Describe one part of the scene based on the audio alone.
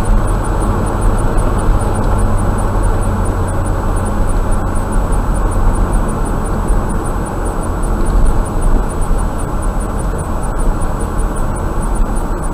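Tyres roll steadily on a paved road.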